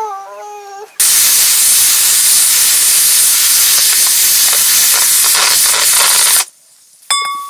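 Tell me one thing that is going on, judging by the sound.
A pressure cooker hisses loudly and whistles as it lets off steam.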